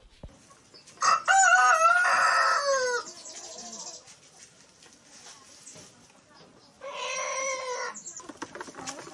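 A bird calls loudly outdoors.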